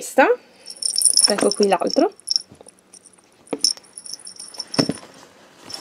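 A small metal keychain rattles in a hand.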